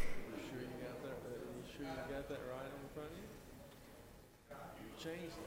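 People murmur and chatter in a large room.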